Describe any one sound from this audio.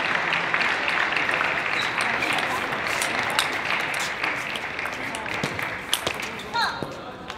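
A table tennis ball clicks back and forth between paddles and the table during a rally in a large hall.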